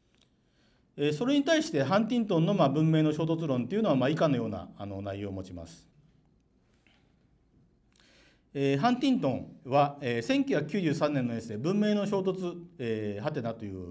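A middle-aged man lectures calmly into a microphone.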